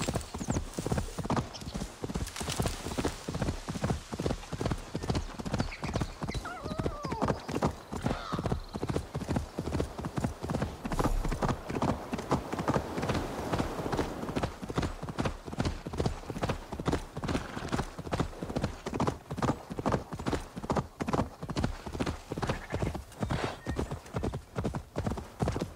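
A horse gallops with quick, heavy hoofbeats.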